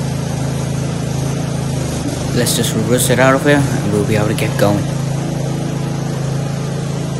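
A riding mower's engine idles with a steady low rumble close by.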